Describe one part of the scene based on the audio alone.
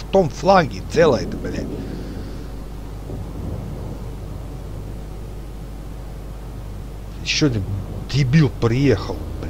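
Water swishes along a moving ship's hull.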